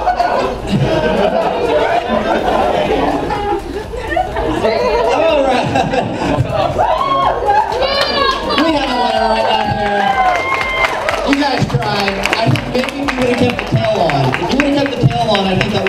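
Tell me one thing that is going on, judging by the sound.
A crowd of people chatter and talk loudly in an echoing hall.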